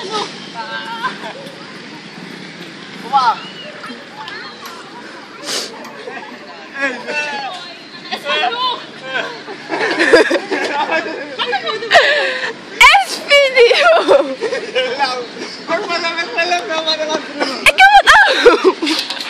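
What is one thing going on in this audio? Young men shout and laugh outdoors.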